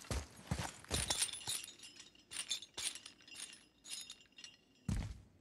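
A metal chain rattles and clinks.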